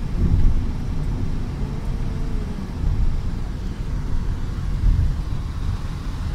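Tyres hum steadily on a highway road.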